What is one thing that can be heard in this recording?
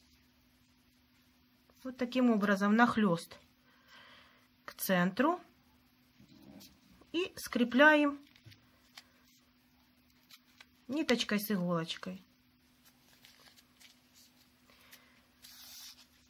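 Satin ribbon rustles softly as fingers fold and pull it.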